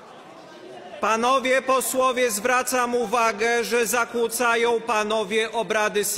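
A man speaks firmly over a microphone in a large echoing hall.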